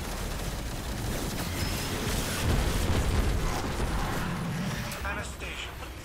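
Energy blasts whoosh and crackle loudly.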